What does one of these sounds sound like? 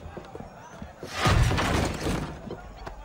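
A wooden door bursts open with a heavy crash.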